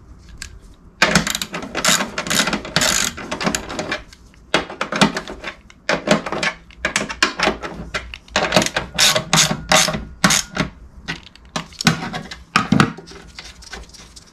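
A ratchet wrench clicks rapidly in bursts.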